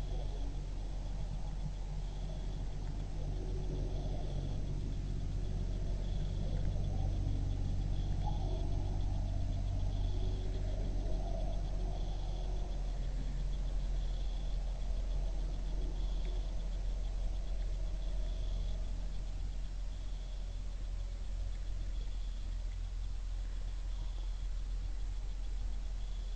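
A deer crunches corn, chewing close by.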